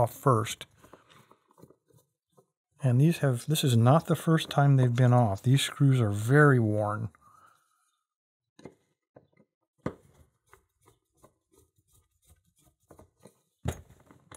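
A metal pick clicks and scrapes inside a lock cylinder.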